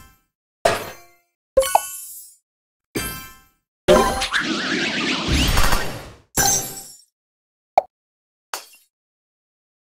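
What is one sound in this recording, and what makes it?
Chiming pops ring out as game blocks burst in quick separate bursts.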